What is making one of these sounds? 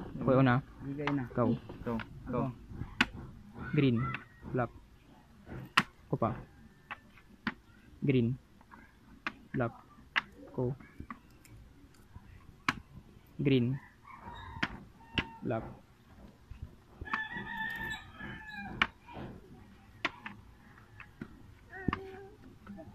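Plastic game pieces click and tap on a wooden board.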